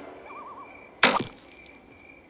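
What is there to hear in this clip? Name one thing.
A slingshot snaps as it fires a stone.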